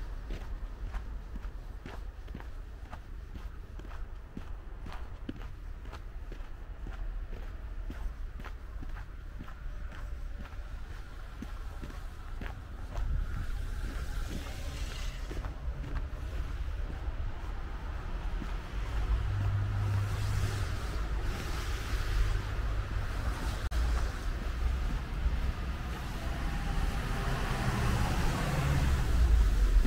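Footsteps crunch steadily on packed snow outdoors.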